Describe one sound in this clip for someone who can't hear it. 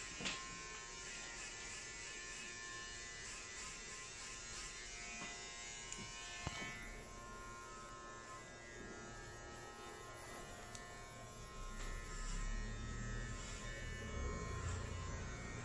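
A straight razor scrapes softly across a lathered scalp.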